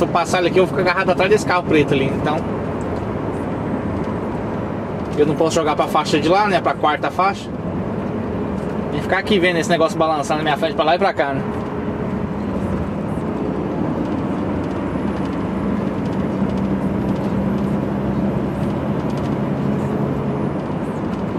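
A truck engine hums steadily from inside the cab.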